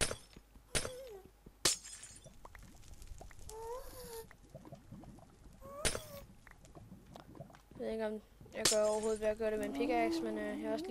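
Stone blocks crunch and crack as they are mined, one after another.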